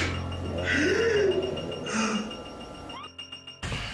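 Two people shout in high, strained voices.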